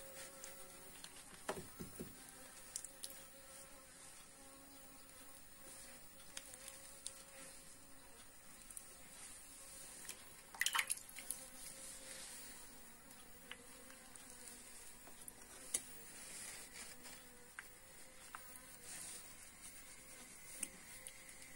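A knife scrapes wax cappings off a honeycomb.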